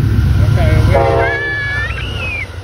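A train horn blares loudly close by.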